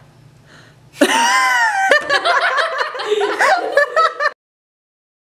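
A young woman laughs and shrieks loudly.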